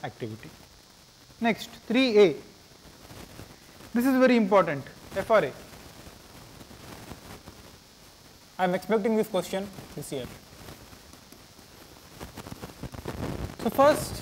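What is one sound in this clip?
A man speaks calmly in short bursts through a microphone.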